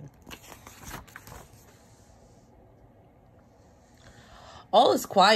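Paper rustles as the pages of a book are turned.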